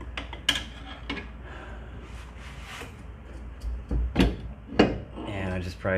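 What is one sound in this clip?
Metal parts clink and knock as a wheel hub is pulled off.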